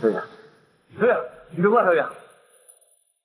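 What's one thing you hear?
A young man calls out with alarm.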